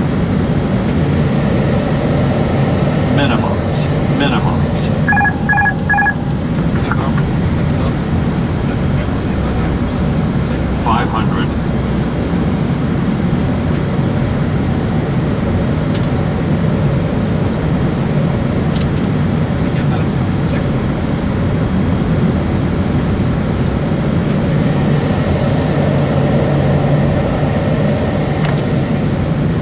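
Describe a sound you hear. The engines and propellers of a twin turboprop airliner drone steadily, heard from inside the cockpit.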